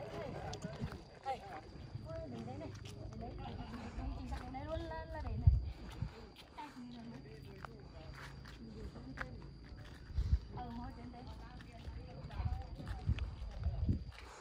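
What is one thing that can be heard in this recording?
Footsteps crunch on a dirt track.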